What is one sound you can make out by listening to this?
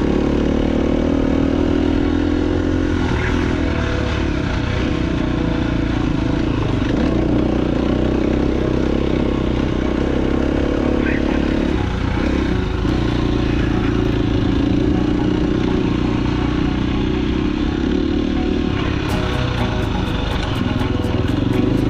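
A dirt bike engine revs loudly and steadily up close.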